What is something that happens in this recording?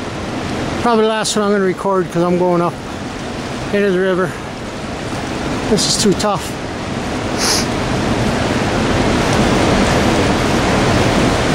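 A river rushes and churns steadily outdoors.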